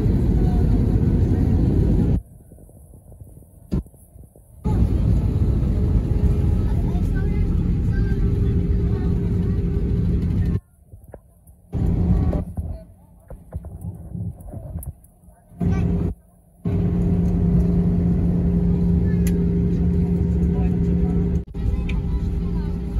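A jet engine roars steadily as an airliner taxis.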